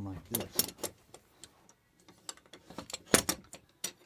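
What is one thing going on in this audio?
Metal clinks as a hinge is handled.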